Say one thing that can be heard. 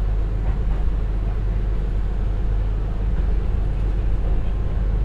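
A diesel train engine rumbles steadily.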